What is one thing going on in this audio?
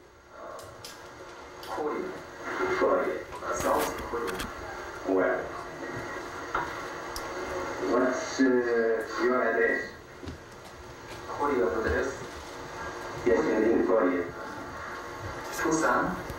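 A young man speaks calmly, heard through a television's loudspeaker.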